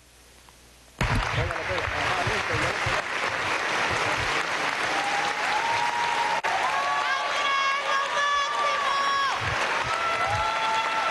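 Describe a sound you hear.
A large crowd applauds loudly in a big echoing hall.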